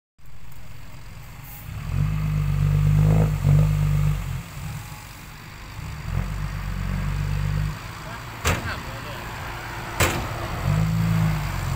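A truck engine rumbles and revs in bursts.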